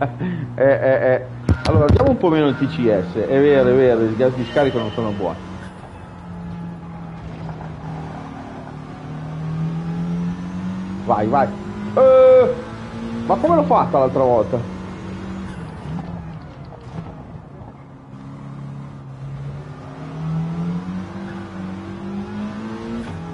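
A racing car engine hums and rises and falls in pitch as the car speeds up and slows down.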